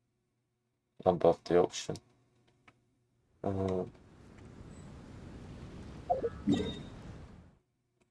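A young man speaks with animation into a microphone, close up.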